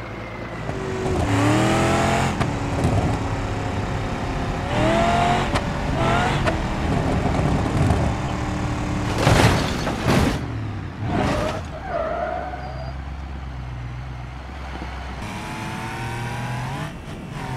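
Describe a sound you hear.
A car engine roars and revs up through its gears.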